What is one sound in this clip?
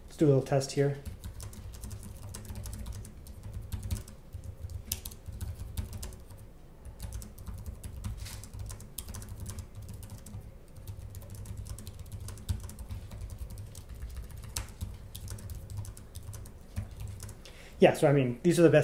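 Fingers tap quickly on a laptop keyboard, with soft rapid clicks.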